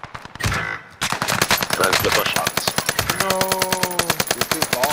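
A rifle fires rapidly in a long burst.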